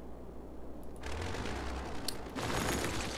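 A crumbling demolition sound effect rumbles.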